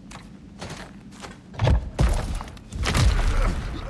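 Hands grip and scrape against rock during a climb.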